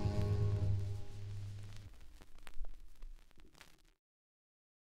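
A song on an old record rings out on its final chord and fades into silence.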